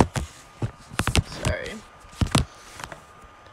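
A young woman speaks briefly, close to a phone microphone.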